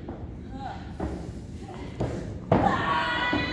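Bodies thud onto a wrestling ring canvas.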